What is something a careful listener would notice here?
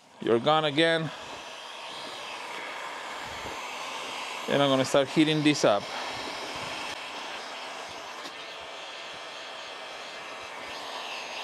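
A heat gun blows with a steady rushing hiss.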